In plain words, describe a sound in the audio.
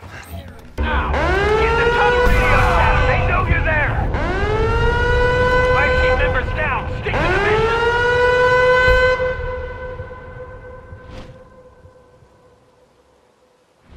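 An alarm siren wails in repeated rising blasts, then fades away.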